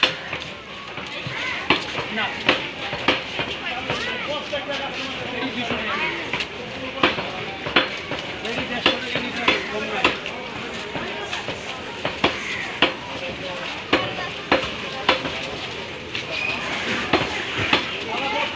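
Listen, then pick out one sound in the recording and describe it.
A busy market crowd murmurs in the background.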